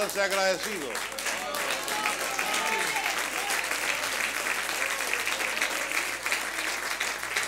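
A large crowd applauds in an echoing hall.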